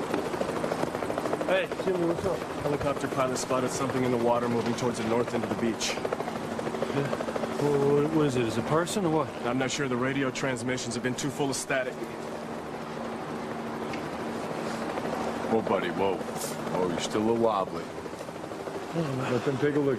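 Young men talk tensely with each other nearby.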